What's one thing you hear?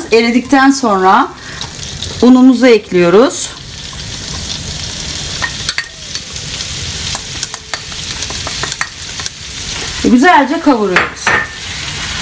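Chopsticks tap against a pan.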